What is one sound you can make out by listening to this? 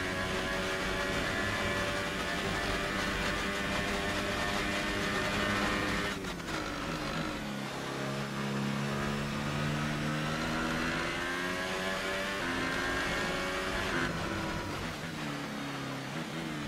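A racing car engine screams at high revs, drops in pitch as it slows, then climbs again.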